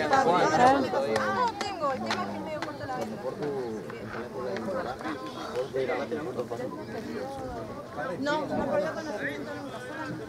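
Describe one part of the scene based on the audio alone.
Young men shout and call out to each other outdoors on an open field.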